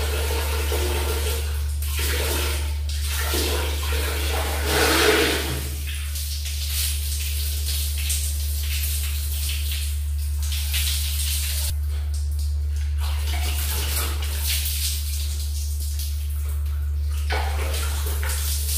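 A woman splashes water on her face.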